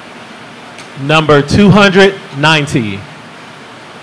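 A man speaks calmly into a microphone through loudspeakers in a large room.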